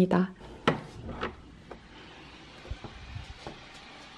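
A door latch clicks.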